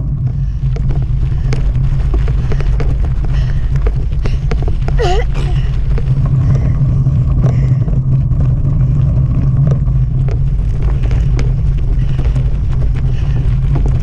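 Bicycle tyres roll and crunch over rough grass and dirt.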